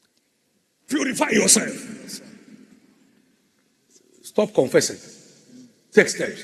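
A man preaches loudly and with animation through a microphone in a large echoing hall.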